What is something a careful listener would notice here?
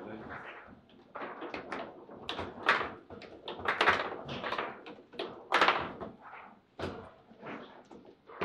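A ball clacks sharply against plastic figures and table walls.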